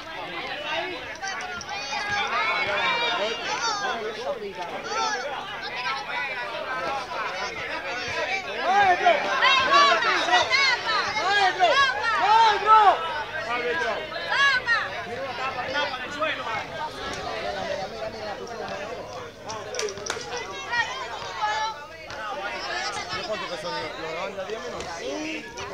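A crowd of men and boys shouts and cheers loudly outdoors.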